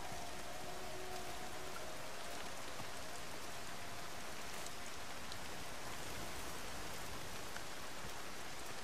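Steady rain patters on leaves and wet ground.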